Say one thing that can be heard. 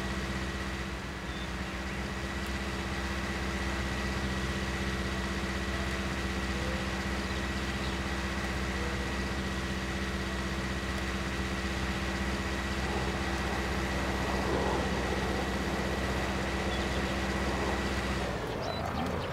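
A tractor engine idles with a steady low hum.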